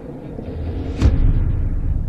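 A shell explodes against a tower with a sharp blast.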